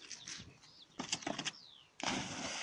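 A dog's paws thump on wooden boards.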